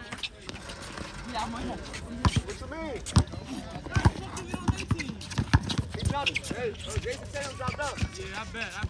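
Young men shout and call out outdoors.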